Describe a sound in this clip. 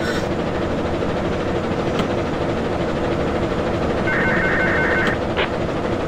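A locomotive engine idles with a steady low rumble.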